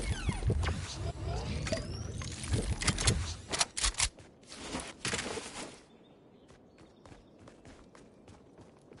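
Video game gunshots fire in quick bursts.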